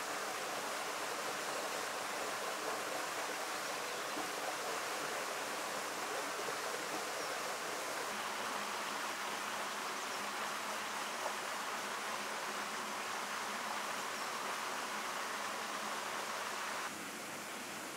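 Water splashes and ripples as fish churn at the surface.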